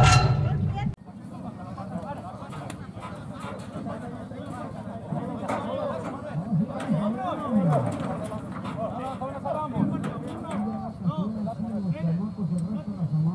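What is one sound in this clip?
A crowd of people chatters at a distance.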